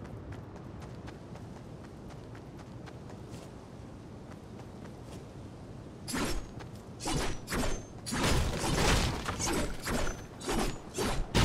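Footsteps patter quickly over dirt and grass.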